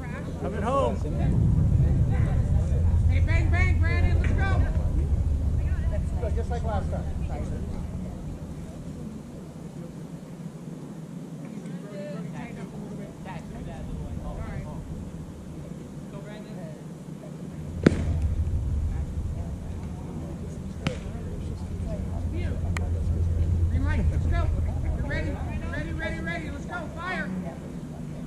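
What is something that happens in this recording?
Wind gusts outdoors with a low rumble.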